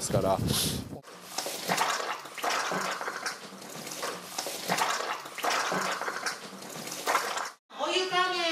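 Water splashes and pours from a spout.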